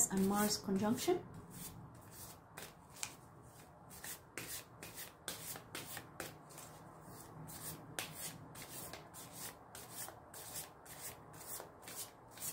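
Cards are shuffled and shifted between hands with soft, quick flicks and taps.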